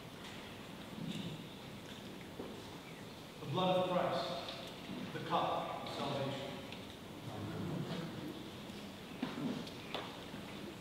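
A man chants aloud in an echoing hall.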